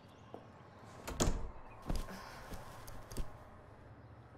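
A cloth bag rustles as it is set down.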